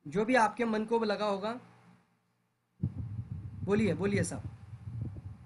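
A man speaks calmly over an online call, in short bursts.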